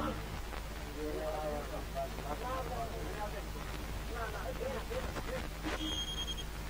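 A man talks on an old film soundtrack.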